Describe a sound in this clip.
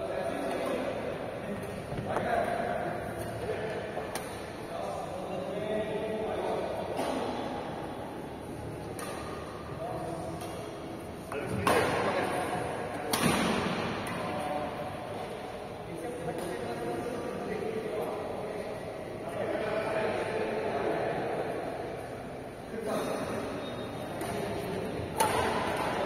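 Men talk and call out across an echoing hall.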